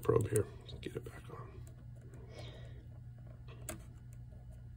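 Metal probe tips tap and scrape against a battery's terminals.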